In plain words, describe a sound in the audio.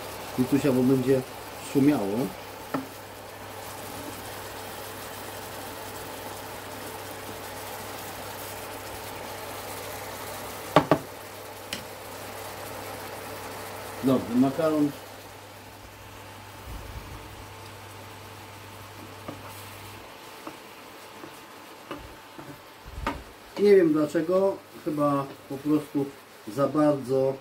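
A wooden spatula scrapes and taps a pan.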